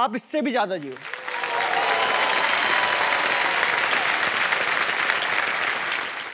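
An audience applauds loudly and cheers.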